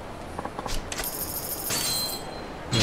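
A machine gives a short electronic chime.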